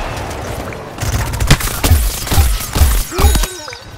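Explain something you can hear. Cartoon spike shots fire with quick, punchy thumps.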